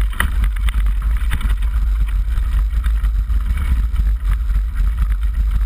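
Wind rumbles loudly against a moving bike.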